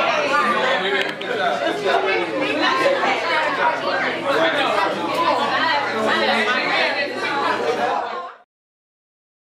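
A crowd of people chatter and laugh at a lively gathering.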